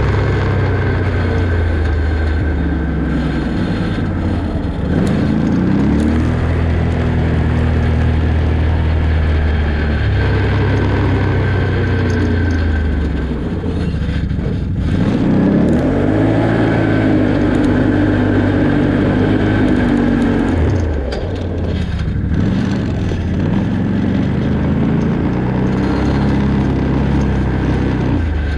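Tyres rumble and crunch over a dirt road.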